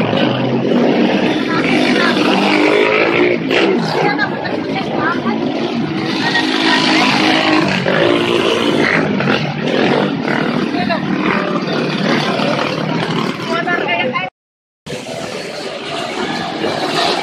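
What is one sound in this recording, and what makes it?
Dirt bike engines rumble and rev as a group rides past.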